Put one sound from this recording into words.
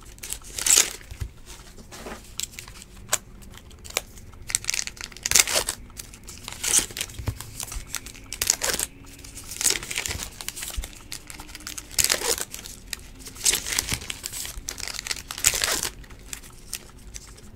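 Trading cards rustle and slide as hands shuffle them.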